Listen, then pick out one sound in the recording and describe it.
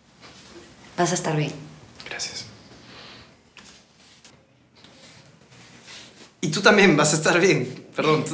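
A young man speaks calmly and warmly nearby.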